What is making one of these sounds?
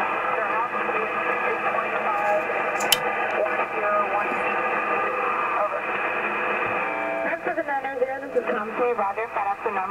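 A shortwave radio receiver hisses with static and warbling, muffled signals through its loudspeaker.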